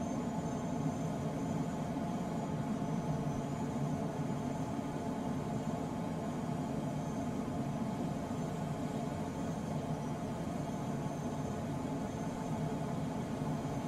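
Air rushes steadily over a glider's canopy in flight.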